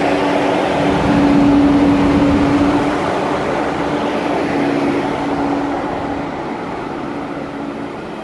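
A train's motors whine with a steady tone.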